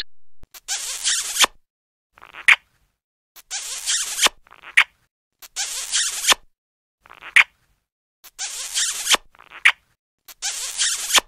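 Loud, wet kissing smacks repeat in short bursts.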